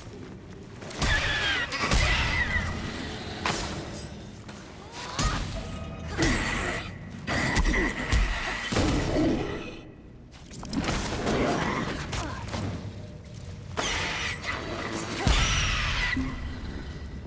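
Punches and kicks thud in a fast brawl.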